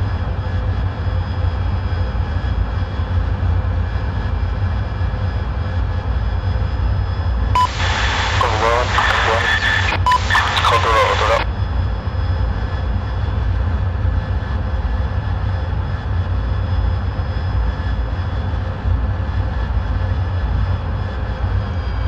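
A jet engine roars with a steady low rumble.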